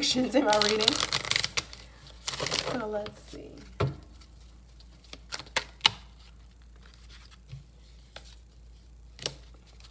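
Playing cards rustle and tap as they are shuffled by hand.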